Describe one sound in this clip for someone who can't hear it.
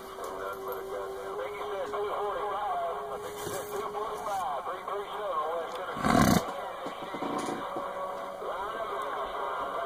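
Garbled, warbling voices and static crackle from a radio loudspeaker.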